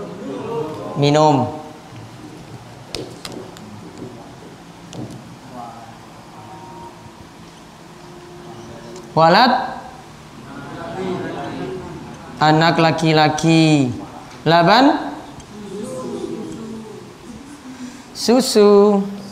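A man speaks calmly, as if teaching, close by.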